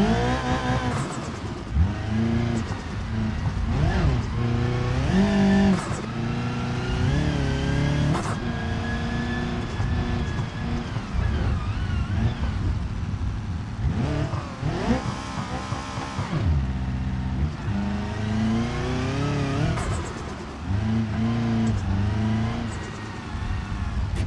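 A car engine revs hard, rising and falling as gears change.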